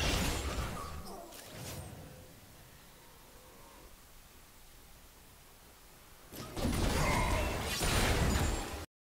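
Game combat sounds clash and thud.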